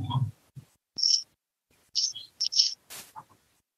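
An elderly man blows his nose into a tissue over an online call.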